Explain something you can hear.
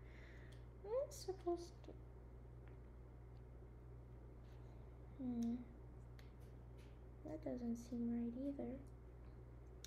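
A young woman speaks softly and briefly close to a microphone.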